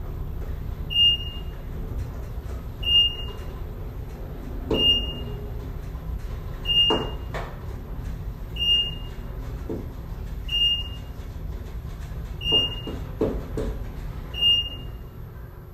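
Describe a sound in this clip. An elevator chimes with a short high beep at a steady pace.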